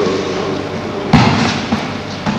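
A body thumps onto a mat.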